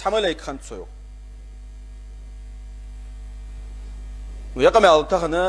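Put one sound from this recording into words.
A man speaks steadily into a nearby microphone, with pauses.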